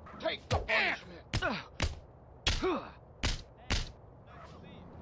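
Punches thump hard in a brawl.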